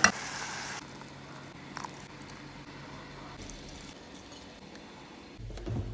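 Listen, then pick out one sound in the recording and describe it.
Liquid pours into a metal pot.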